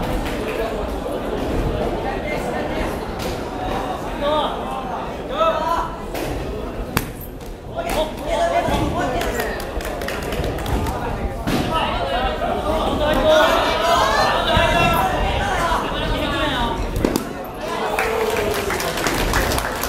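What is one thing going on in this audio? Sneakers squeak and thud on a wooden floor as players dodge.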